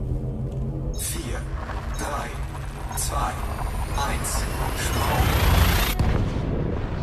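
A spaceship's jump drive roars and crackles with rushing bursts, then cuts off sharply.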